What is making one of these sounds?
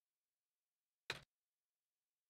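A short chime sounds.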